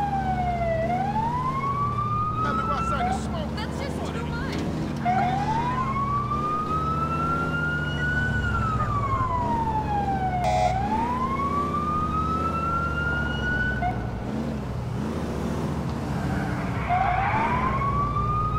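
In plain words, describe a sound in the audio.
A van engine hums steadily.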